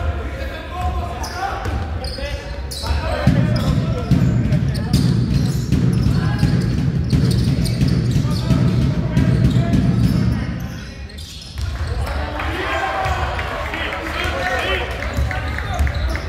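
Spectators talk and call out in a large echoing hall.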